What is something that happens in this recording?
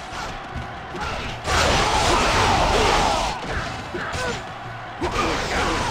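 A crowd of men shouts in battle.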